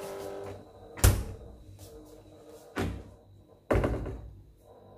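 A refrigerator door thuds shut.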